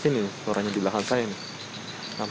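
A man speaks quietly at a distance outdoors.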